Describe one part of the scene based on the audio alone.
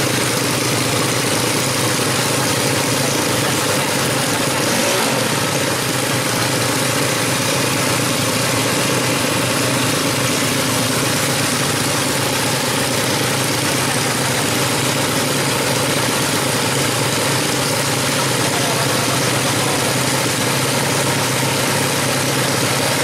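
A motorcycle engine idles loudly and revs.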